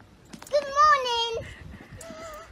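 A small dog whines in short high yelps.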